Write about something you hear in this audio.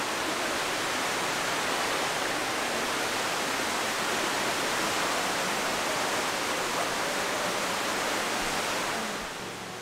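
A waterfall splashes steadily into a pool, echoing in a cave.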